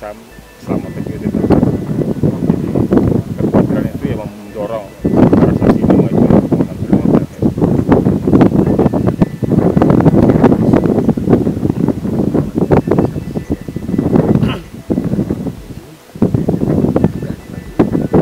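A middle-aged man speaks calmly and steadily into a microphone close by, outdoors.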